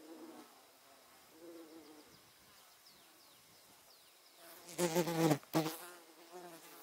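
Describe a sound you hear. Wind rustles softly through ripe wheat.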